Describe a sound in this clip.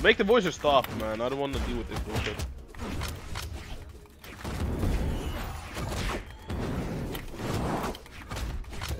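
Game fighting effects whoosh and thump.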